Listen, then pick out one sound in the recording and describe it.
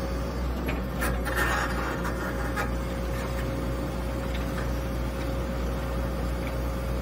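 An excavator engine rumbles steadily, heard from the cab.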